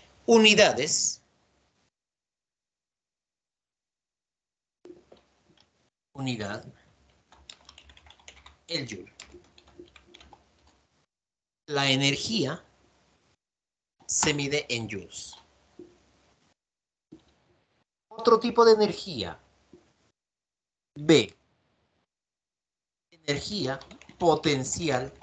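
A man speaks calmly in short phrases, heard through a microphone on an online call.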